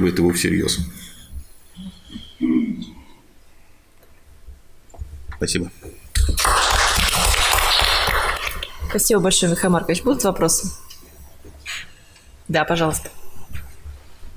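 A man speaks into a microphone in an echoing hall, calmly and in short bursts.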